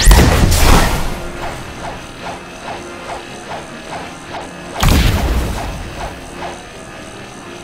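Heavy magic blasts boom and crackle, followed by quick rhythmic hits.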